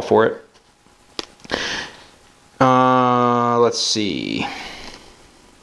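A middle-aged man speaks close to a microphone in short bursts with pauses.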